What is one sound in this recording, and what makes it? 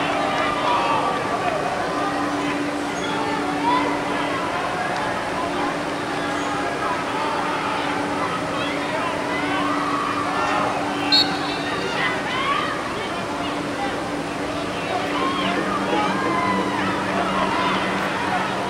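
A stadium crowd chatters and shouts outdoors.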